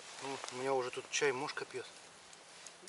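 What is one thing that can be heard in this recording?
A man speaks calmly close by.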